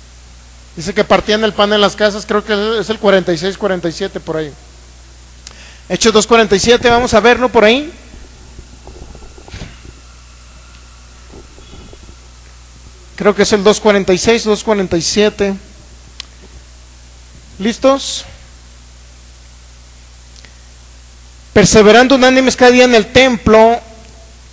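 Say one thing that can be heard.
A man speaks with animation through a microphone and loudspeakers, in bursts with pauses.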